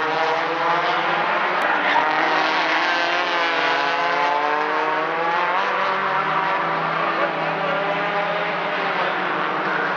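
Racing car engines roar loudly, nearby.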